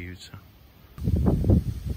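Wind gusts outdoors across the open water.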